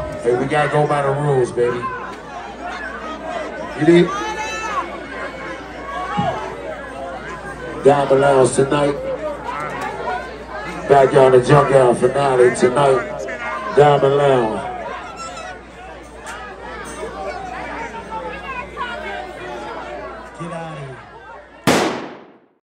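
A man raps loudly through a microphone over a loudspeaker system.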